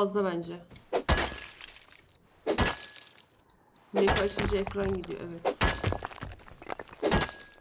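A pickaxe strikes rock with sharp knocks.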